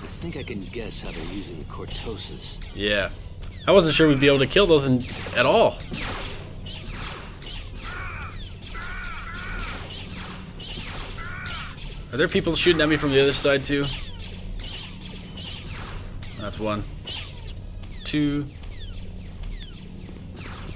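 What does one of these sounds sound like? A lightsaber hums steadily.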